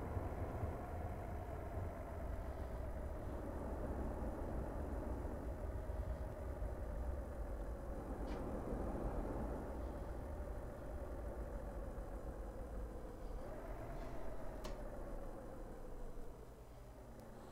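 A truck engine hums and changes pitch as it drives.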